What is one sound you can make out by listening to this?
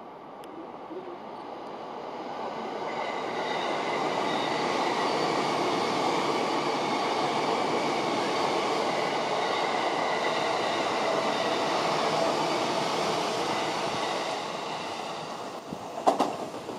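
A train rushes past close by with a loud, steady roar that swells and then fades.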